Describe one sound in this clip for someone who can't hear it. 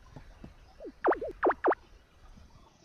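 Quick bright blips sound as a line of game dialogue pops up.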